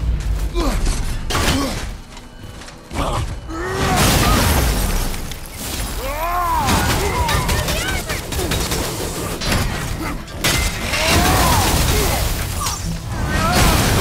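Weapons clash and strike with heavy metallic impacts.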